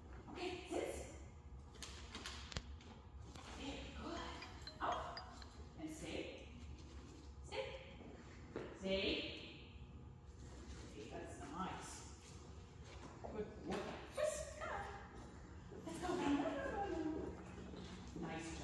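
A woman talks encouragingly to a dog at a distance in a large echoing hall.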